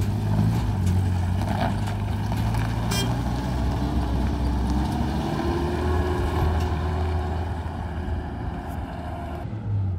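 A truck engine rumbles as the truck drives away and slowly fades.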